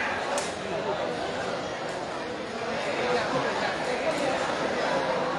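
A large crowd of young men chatters and shouts in a big echoing hall.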